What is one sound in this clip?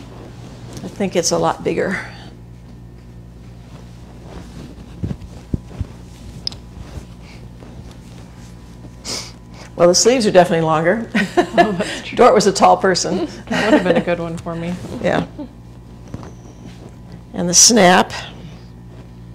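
A middle-aged woman talks calmly, close by.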